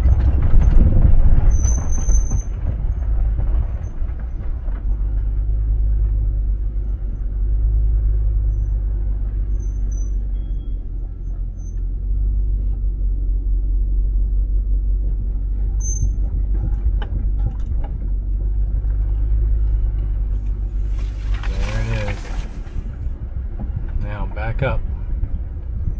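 A vehicle engine rumbles steadily while driving slowly.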